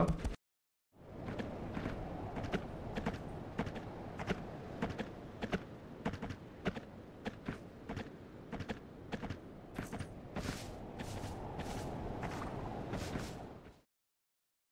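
Hooves clop rhythmically as a horse gallops over hard ground.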